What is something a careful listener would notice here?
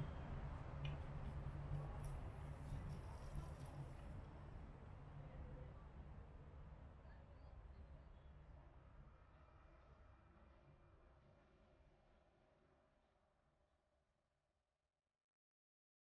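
A light breeze rustles leaves and slowly fades away.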